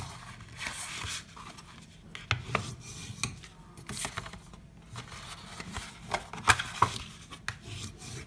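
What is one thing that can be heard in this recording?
Paper rustles and slides as it is folded and creased by hand.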